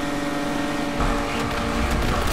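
A car engine revs up with a sudden boost.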